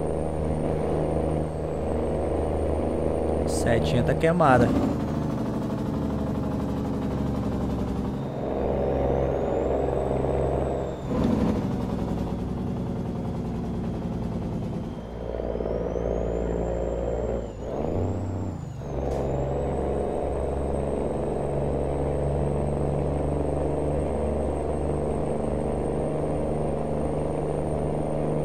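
A truck engine hums steadily and shifts through gears.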